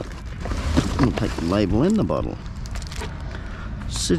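A plastic bottle crinkles in a gloved hand.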